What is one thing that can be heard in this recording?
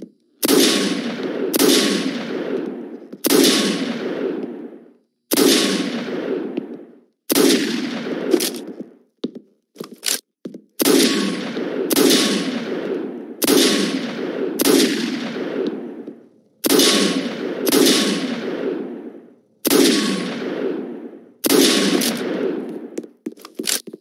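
Heavy gunshots boom one after another, each with a long echoing tail.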